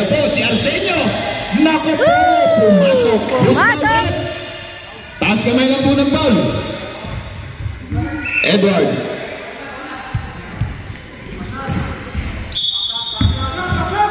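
Players call out to each other across the echoing hall.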